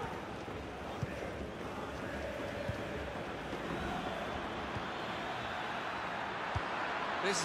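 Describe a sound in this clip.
A football is kicked with dull thumps now and then.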